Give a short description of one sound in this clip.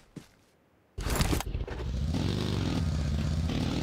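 A buggy engine starts and revs loudly.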